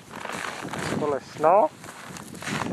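A man speaks loudly close by outdoors.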